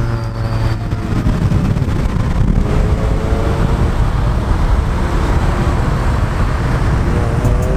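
A car engine hums steadily as a car drives along a road.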